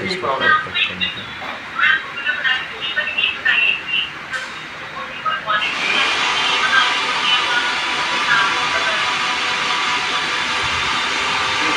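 A metal wrench clinks against a pipe fitting.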